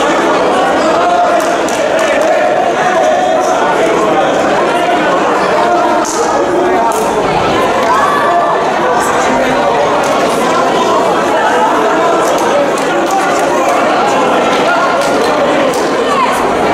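A crowd of young people cheers and shouts in a large echoing hall.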